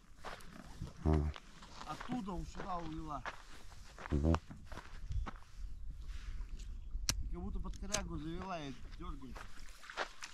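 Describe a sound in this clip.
A man talks nearby in a calm voice, outdoors.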